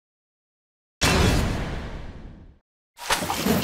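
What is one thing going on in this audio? A party piñata bursts with a loud bang and a rustling shower of prizes.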